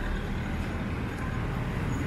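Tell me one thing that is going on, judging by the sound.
A motorbike engine drones past.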